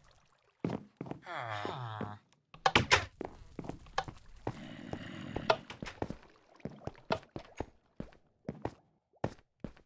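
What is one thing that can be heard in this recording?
Footsteps tap steadily on hard blocks.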